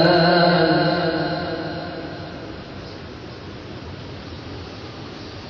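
Water splashes steadily down a small waterfall into a pool.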